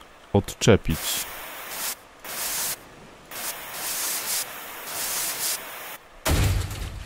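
A blowtorch hisses in short bursts.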